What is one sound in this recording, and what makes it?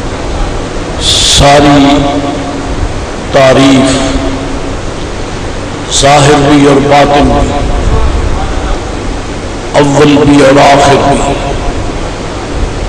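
An elderly man speaks slowly into a microphone, heard through a loudspeaker, in phrases with pauses.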